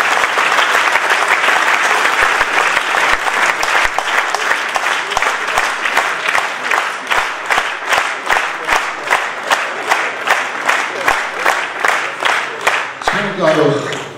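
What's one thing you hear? A large crowd applauds in a big hall, the clapping turning into slow rhythmic claps in unison.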